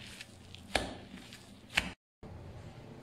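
Gloved hands squish and knead a minced meat mixture.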